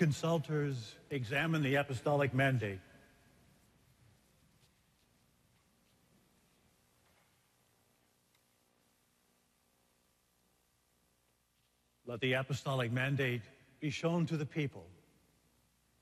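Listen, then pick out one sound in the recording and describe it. A man chants into a microphone in a large echoing hall.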